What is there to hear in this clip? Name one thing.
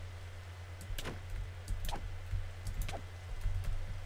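A sword strikes a crab with sharp hits.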